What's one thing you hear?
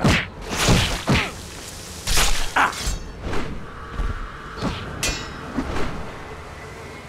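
Blades slash and strike flesh in quick bursts.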